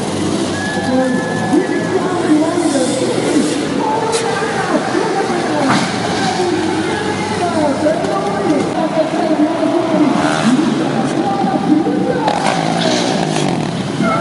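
A motorbike engine revs loudly, rising and falling again and again.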